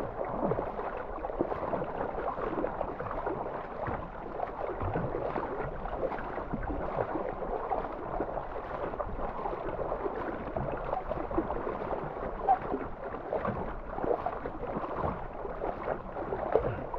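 Water rushes and gurgles against a kayak's hull.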